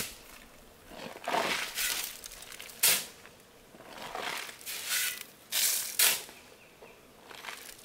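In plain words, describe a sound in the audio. Shovelfuls of sand and gravel spill into a metal wheelbarrow.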